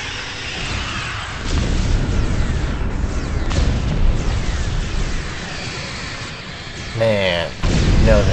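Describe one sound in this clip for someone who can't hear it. Low rumbling blasts and impacts boom throughout.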